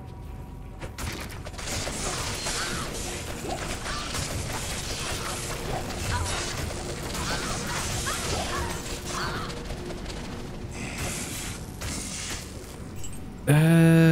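Spells and weapon blows crash in a game battle.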